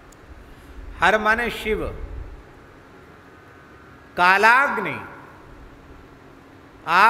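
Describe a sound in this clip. An elderly man chants in long drawn-out phrases into a microphone.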